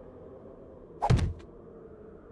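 A wooden block knocks heavily into place.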